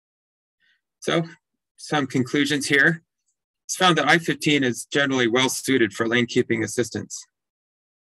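A middle-aged man speaks calmly through an online call.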